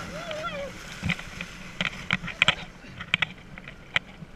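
Water splashes as a rider falls in.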